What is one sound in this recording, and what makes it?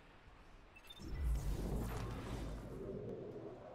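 A deep whooshing rumble swells and fades.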